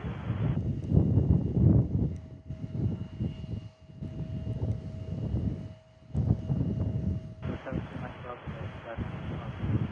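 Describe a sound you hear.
A jet engine roars as a plane takes off.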